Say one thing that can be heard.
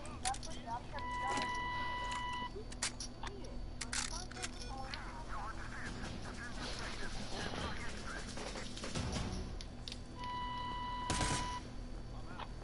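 An electronic countdown tone beeps steadily.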